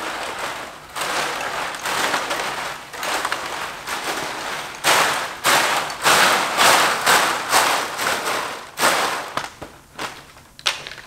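Stiff plastic thatch rustles and swishes as a man handles it.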